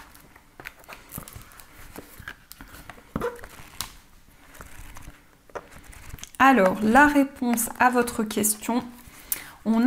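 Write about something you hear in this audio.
Pages of a book rustle as they are flipped.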